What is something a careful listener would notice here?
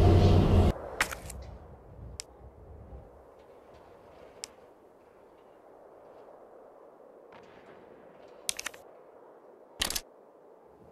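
Menu selection clicks sound in short, sharp blips.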